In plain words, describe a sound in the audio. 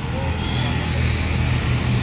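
A motorbike engine passes close by.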